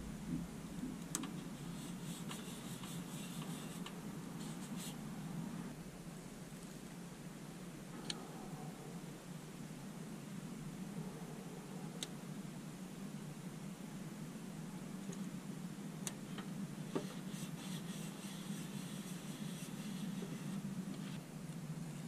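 Fingers rub and smooth a sticker onto plastic with a soft scratchy rustle.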